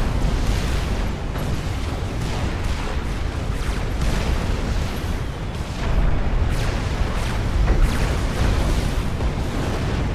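Explosions boom and rumble repeatedly.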